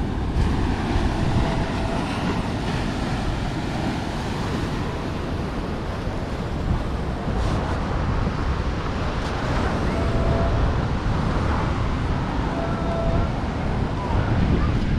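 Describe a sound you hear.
Waves break and wash against a sea wall.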